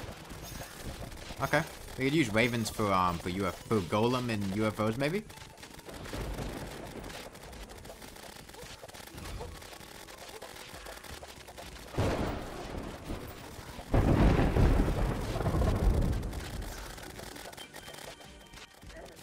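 A video game battle crackles with blasts and magic effects.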